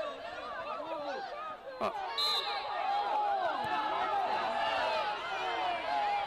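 A crowd of young players and spectators shout and cheer outdoors.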